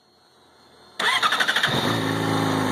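A motorcycle engine starts up.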